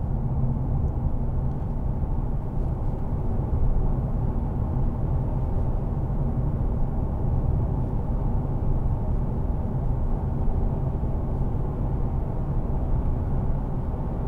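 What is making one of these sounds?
Tyres roar on the road at speed.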